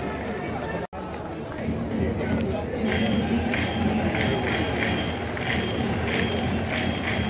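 A large crowd murmurs and cheers in an echoing stadium.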